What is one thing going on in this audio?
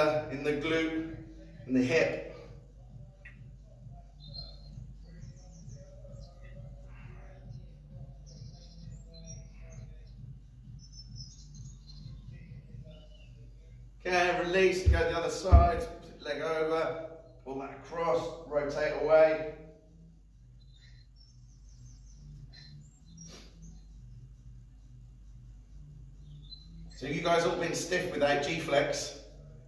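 A man talks calmly and clearly, close by.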